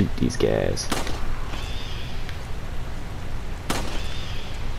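A handgun fires single shots.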